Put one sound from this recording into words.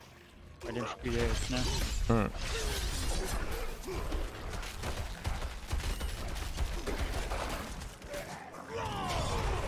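Magic blasts and weapon hits crash in a rapid, noisy flurry.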